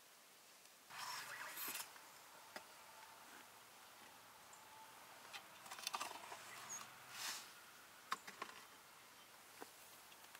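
A metal pan scrapes and clanks against a clay oven.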